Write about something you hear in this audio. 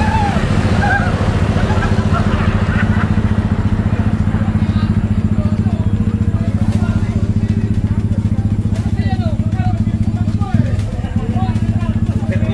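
A small crowd chatters at a distance outdoors.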